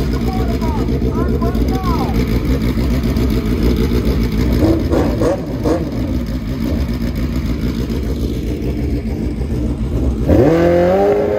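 A motorcycle engine rumbles loudly and roughly close by.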